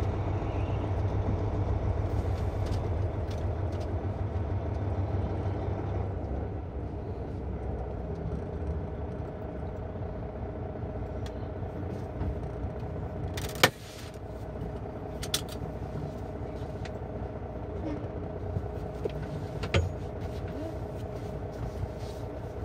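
A vehicle engine rumbles steadily close by.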